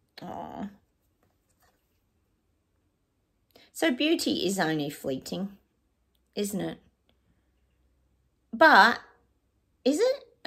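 A middle-aged woman speaks calmly and close by, in short phrases.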